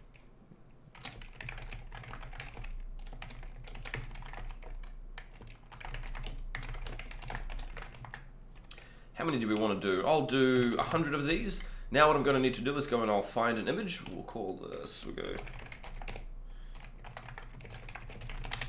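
Keyboard keys clatter in quick bursts.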